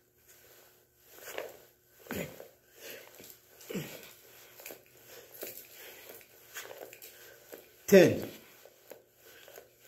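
An elderly man grunts and breathes hard with effort.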